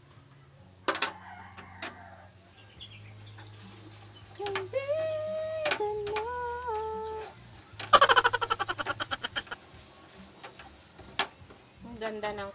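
A metal spoon clinks against a pot.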